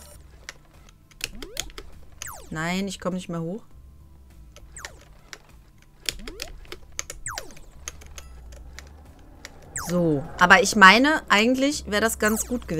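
Electronic game sound effects blip and chirp.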